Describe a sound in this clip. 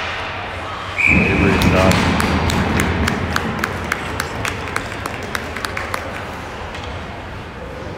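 A crowd of spectators cheers loudly in an echoing arena.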